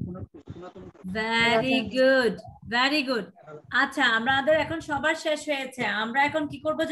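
A young child speaks brightly over an online call.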